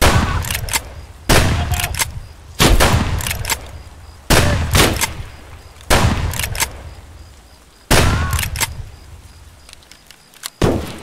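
A shotgun fires single shots that echo outdoors.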